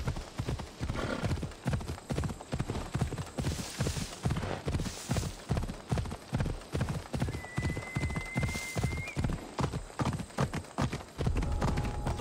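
A horse's hooves pound at a steady gallop.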